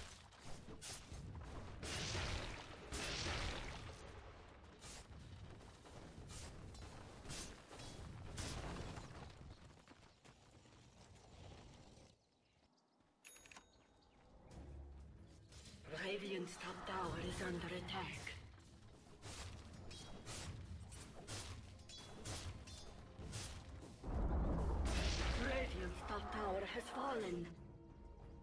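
Swords clash and spells crackle.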